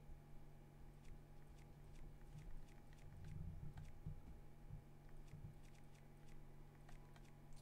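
Soft menu ticks click in quick succession.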